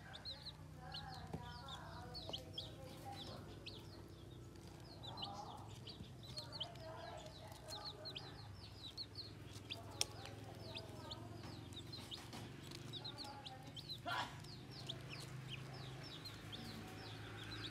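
Chicks cheep rapidly and high, close by.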